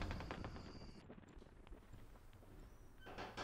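A door swings shut.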